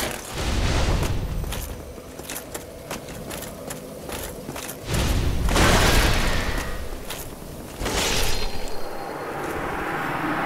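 Swords clash and strike armour in a game fight.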